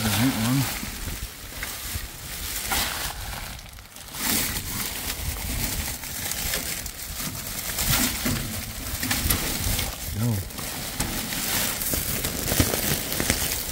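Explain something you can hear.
Plastic bin bags rustle and crinkle close by.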